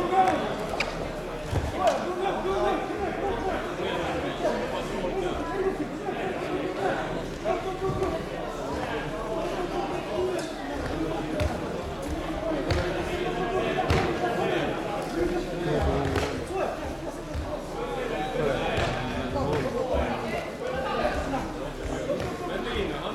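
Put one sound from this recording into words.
A crowd of spectators chatters and calls out throughout, echoing in a large hall.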